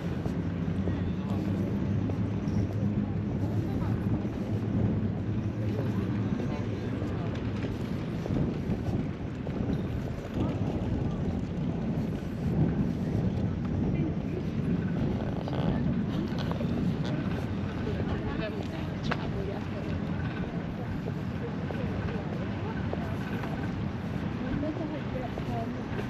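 Wind rushes steadily across the microphone outdoors.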